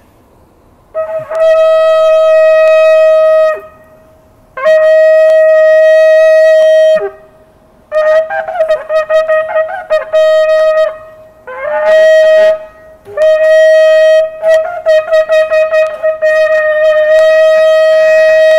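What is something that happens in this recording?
A man blows a ram's horn in loud, long, brassy blasts and short broken calls.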